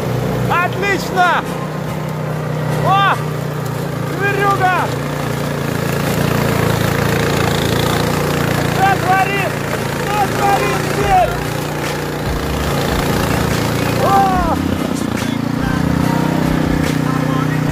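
Snow sprays out of a snowblower chute with a hiss.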